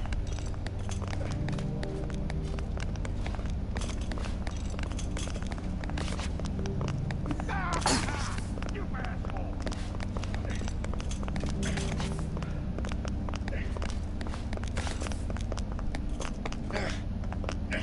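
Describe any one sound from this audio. Footsteps of a game character crunch steadily on the ground.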